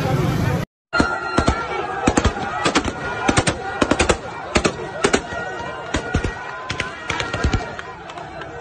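A crowd claps hands rhythmically.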